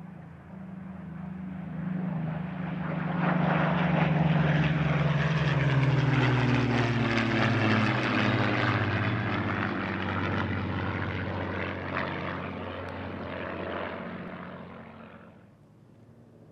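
Propeller plane engines drone loudly overhead, their pitch falling as they pass and fade away.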